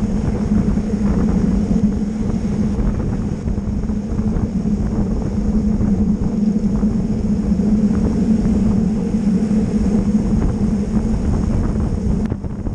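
Wind buffets a microphone steadily.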